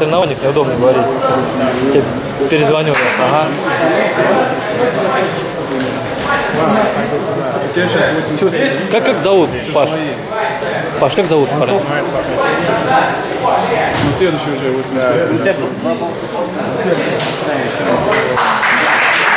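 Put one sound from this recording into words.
Several young men talk and call out in an echoing hall.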